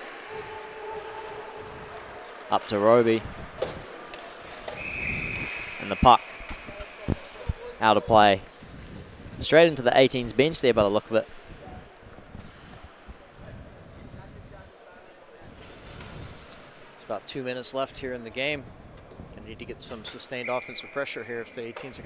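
Skates scrape and carve across ice.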